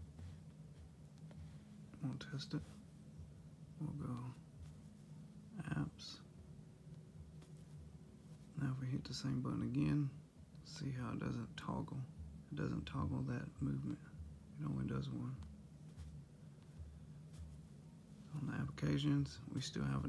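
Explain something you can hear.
A finger taps lightly on a phone's touchscreen.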